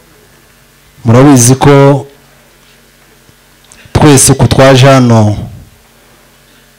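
A young man speaks loudly into a microphone in short bursts, heard through loudspeakers.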